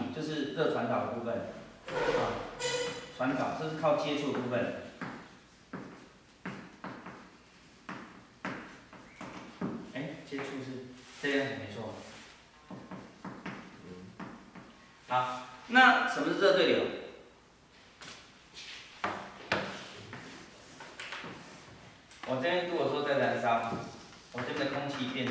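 A man lectures calmly in a room with some echo.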